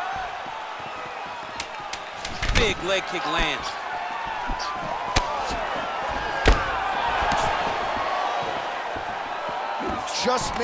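A crowd cheers and whistles in a large arena.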